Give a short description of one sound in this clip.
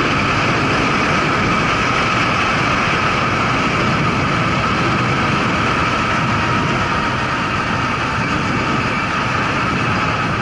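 A motorcycle engine hums steadily as the motorcycle rides along.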